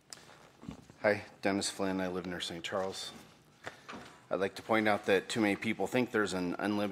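A middle-aged man reads out calmly through a microphone.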